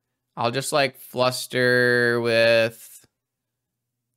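A young man speaks with animation close to a microphone, drawing out a long word.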